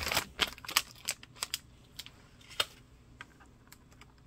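A plastic clamshell rattles as it is handled.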